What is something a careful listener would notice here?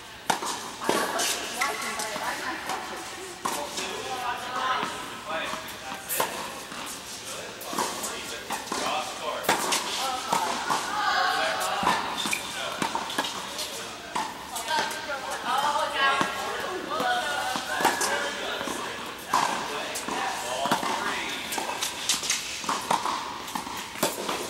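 Tennis rackets hit a ball back and forth in a large echoing indoor hall.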